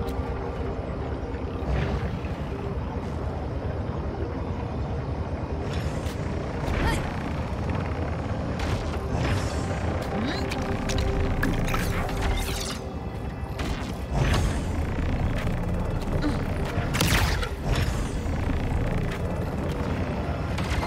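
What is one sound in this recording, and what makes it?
Electronic game sound effects chime and whoosh.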